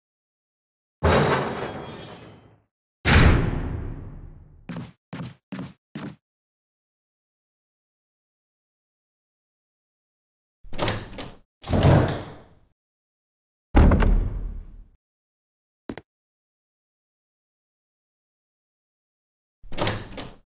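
A heavy door opens with loud thuds and a fading rumble.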